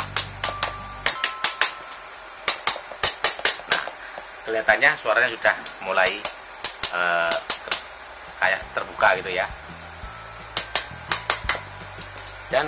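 Pliers click and snap against a hard plastic case.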